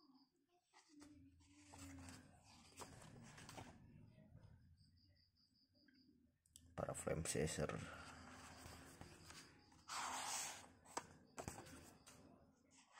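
Paper pages rustle and flap as a book's pages are turned.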